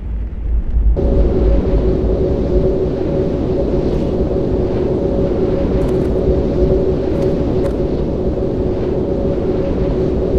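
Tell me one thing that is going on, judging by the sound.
A magic spell hums steadily.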